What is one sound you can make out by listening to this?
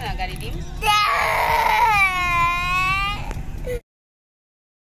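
A toddler cries and wails loudly close by.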